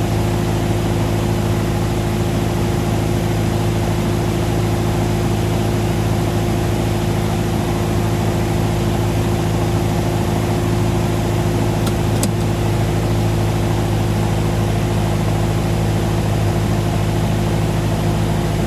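Wind rushes past the cockpit.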